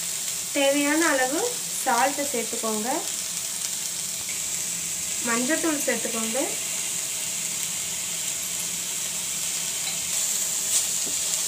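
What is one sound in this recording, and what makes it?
Vegetables sizzle softly in a hot pan.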